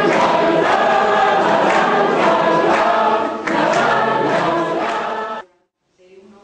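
A group of young men and women laugh loudly together.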